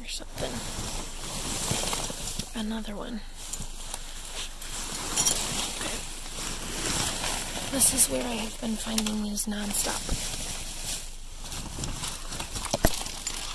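Plastic sheeting rustles and crinkles as it is pushed aside.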